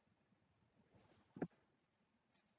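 Dice clatter briefly.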